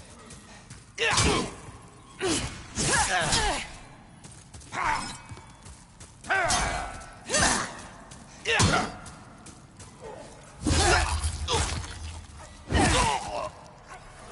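Blows strike hard in sudden bursts.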